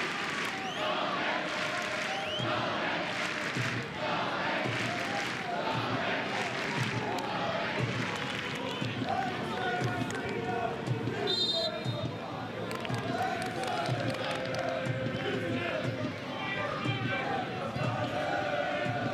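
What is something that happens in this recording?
A large stadium crowd cheers and chants loudly.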